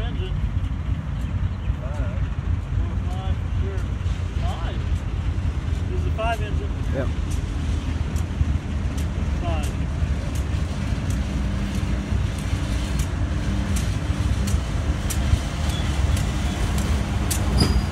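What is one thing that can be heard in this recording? Diesel locomotives rumble deeply as a freight train approaches.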